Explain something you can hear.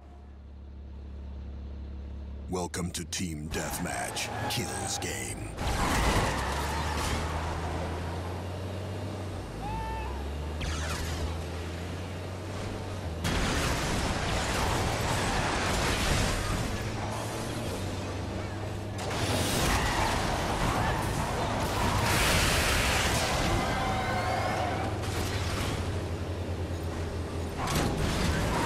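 An armoured tow truck engine rumbles in a video game.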